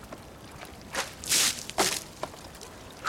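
Water splashes as it is thrown from bowls.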